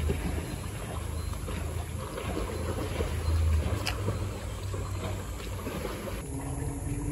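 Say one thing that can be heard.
Water in a pool ripples and laps gently against the sides.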